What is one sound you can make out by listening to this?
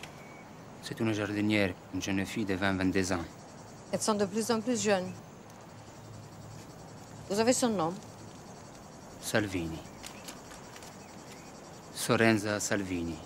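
A woman speaks close by, calmly.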